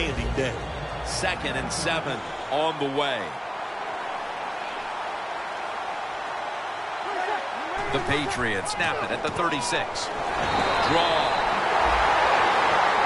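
A large stadium crowd roars, swelling louder toward the end.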